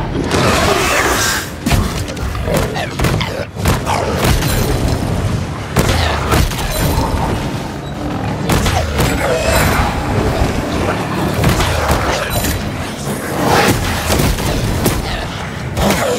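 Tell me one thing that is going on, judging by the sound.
Magical blasts whoosh and crackle.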